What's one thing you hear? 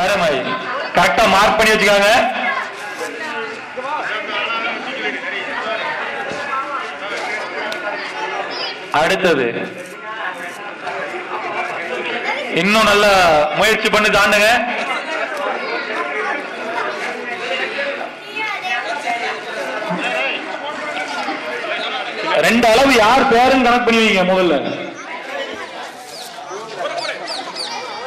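A crowd of children chatters and calls out outdoors.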